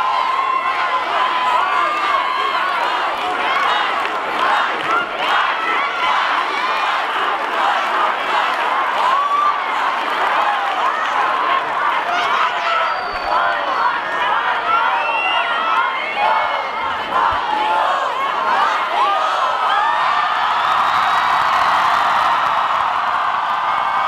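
A large crowd cheers, screams and whistles loudly outdoors.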